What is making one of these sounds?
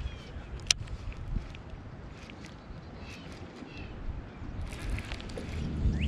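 A fishing reel whirs and clicks as line is wound in.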